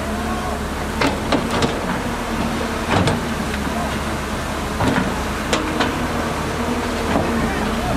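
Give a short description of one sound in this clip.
Excavator tracks and bucket clank and scrape against rock and soil.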